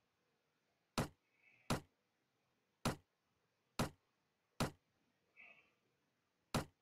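Game menu buttons click sharply, several times.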